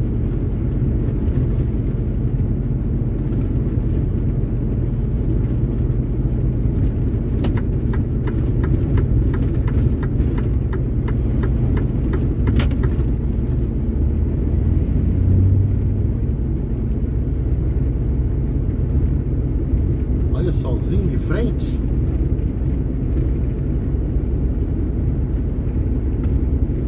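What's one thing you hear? A vehicle's engine drones steadily while driving along a road.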